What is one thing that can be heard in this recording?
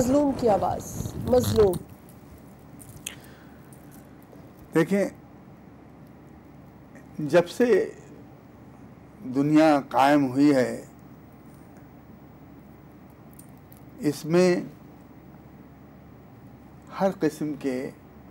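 An elderly man speaks calmly into a microphone, in short phrases with pauses.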